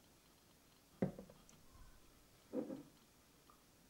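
A glass jar knocks down onto a hard counter.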